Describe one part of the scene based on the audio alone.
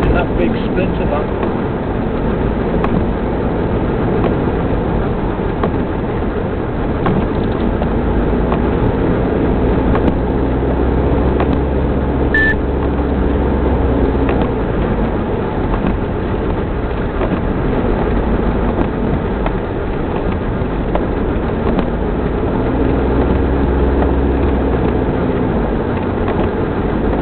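Tyres rumble and hiss on a wet, slushy road.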